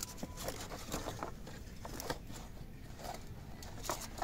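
Aluminium foil crinkles and rustles as it is handled.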